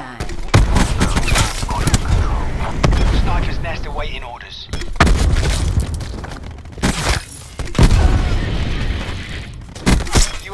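Rapid gunfire rattles in bursts with loud booming shots.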